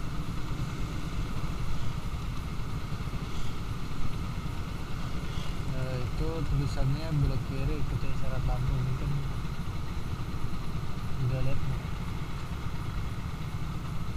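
A motorcycle engine idles with a low, steady rumble close by.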